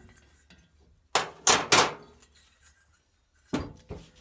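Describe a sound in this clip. A metal tool is set down on a hard table with a clack.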